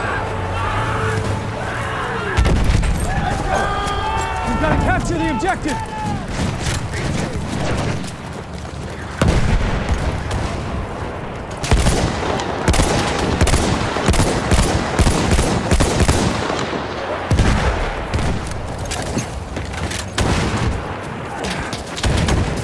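Explosions boom and rumble nearby.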